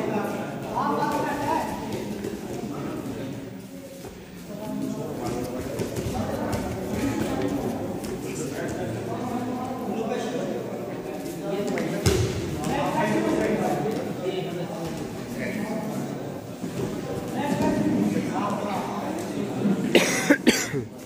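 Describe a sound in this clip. A crowd of young spectators chatters and calls out.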